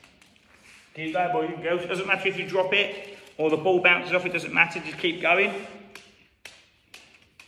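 A young man speaks clearly and with animation in a large echoing hall.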